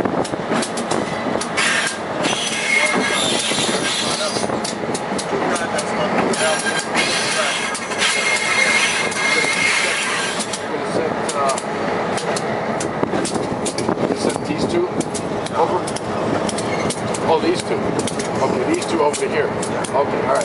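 A locomotive rumbles along the track with steady wheel clatter.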